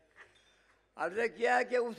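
An elderly man begins speaking into a microphone.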